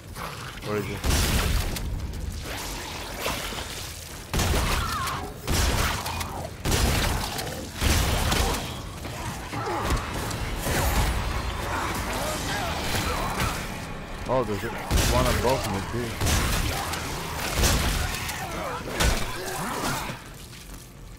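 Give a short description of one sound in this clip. Heavy gunshots boom one after another.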